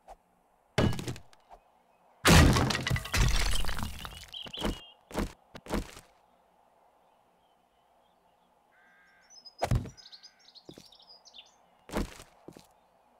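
A pickaxe strikes wood.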